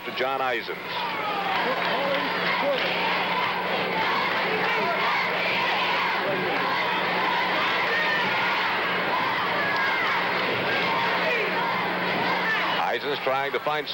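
A large crowd murmurs and roars in an echoing hall.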